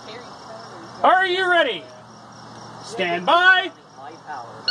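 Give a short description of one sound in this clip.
A man calls out commands loudly nearby.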